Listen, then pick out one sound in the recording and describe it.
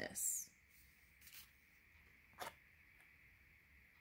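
A card is picked up off a wooden board with a soft scrape.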